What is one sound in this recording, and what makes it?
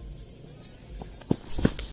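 Footsteps thud on grass close by.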